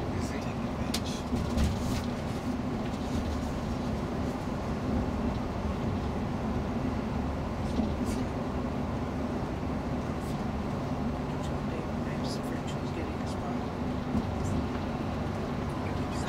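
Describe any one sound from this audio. A bus engine hums steadily from inside the bus.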